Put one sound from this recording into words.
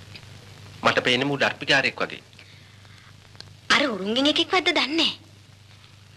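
A man speaks with raised, tense voice nearby.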